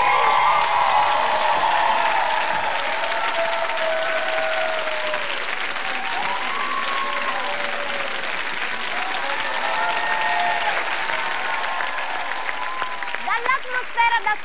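A large crowd cheers and whistles loudly.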